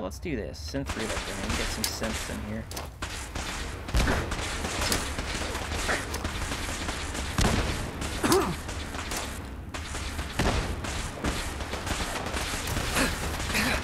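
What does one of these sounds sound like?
A laser rifle fires rapid crackling shots.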